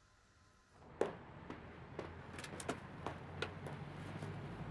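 High heels click on pavement.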